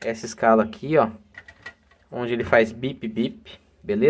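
A multimeter dial clicks as it turns.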